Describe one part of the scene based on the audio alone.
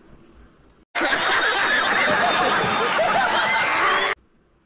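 A crowd laughs and cheers loudly.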